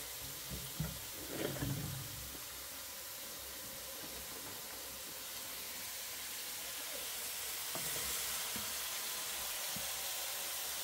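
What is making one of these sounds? Metal bowls and pots clink and knock.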